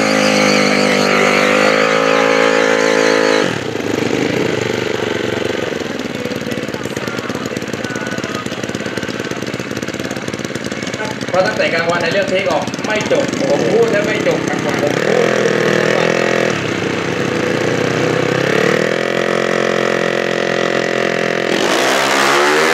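A motorcycle engine idles and revs loudly, close by.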